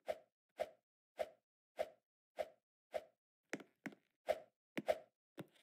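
A game character's footsteps thud in a quick, even rhythm.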